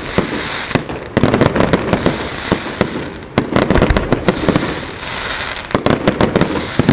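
Fireworks boom in a rapid finale outdoors.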